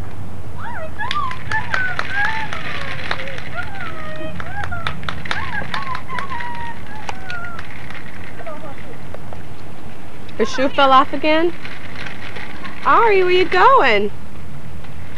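A baby squeals and babbles loudly, close by.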